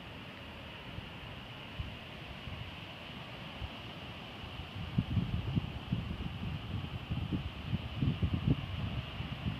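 Ocean waves break and wash onto the shore nearby.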